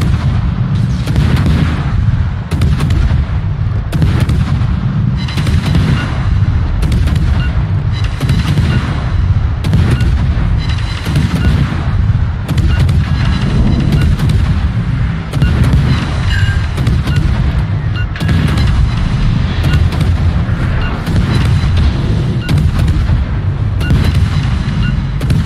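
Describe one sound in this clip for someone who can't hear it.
Anti-aircraft guns rattle with rapid popping shots.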